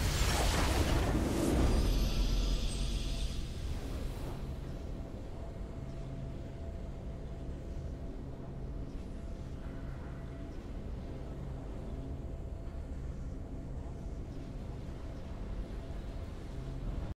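A triumphant game fanfare swells and then fades to a low steady drone.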